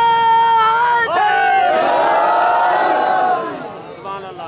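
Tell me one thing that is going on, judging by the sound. A crowd of men chants together in response.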